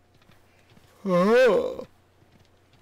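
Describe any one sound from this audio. A man laughs out loud.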